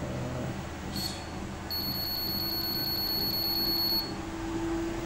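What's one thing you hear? A treadmill console beeps as a button is pressed.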